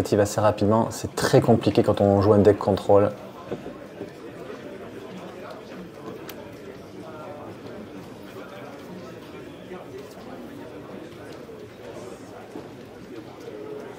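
Playing cards are shuffled and laid down on a table.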